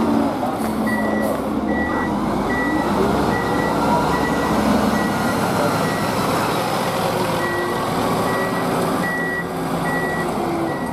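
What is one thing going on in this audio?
A fire truck's engine rumbles loudly nearby.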